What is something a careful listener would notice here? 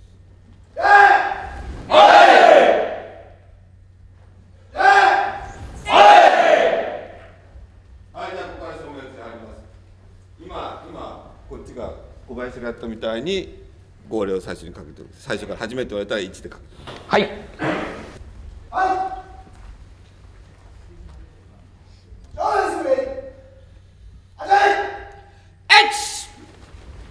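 Young men shout sharply together in a large echoing hall.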